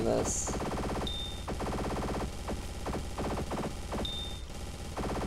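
A short chime rings out when a target is destroyed.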